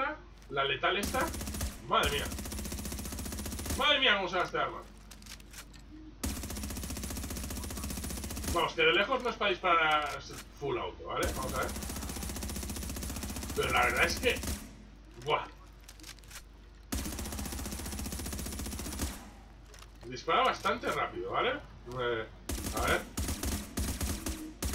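A rifle fires rapid bursts of shots, echoing in an indoor hall.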